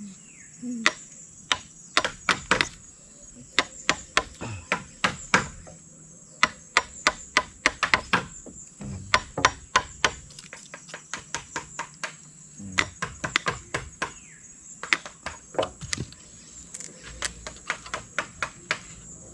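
Hammers knock sharply on wooden posts at an uneven pace.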